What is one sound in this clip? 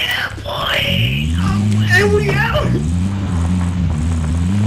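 A vehicle engine hums and revs.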